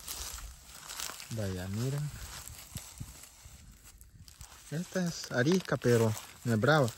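Dry stalks rustle as a goat grazes.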